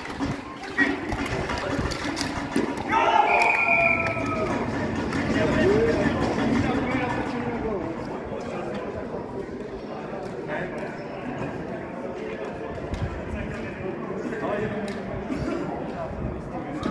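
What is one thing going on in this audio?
Skate wheels roll and scrape on the hard court.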